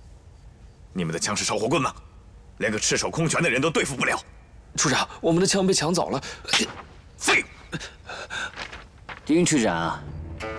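A young man speaks sternly nearby.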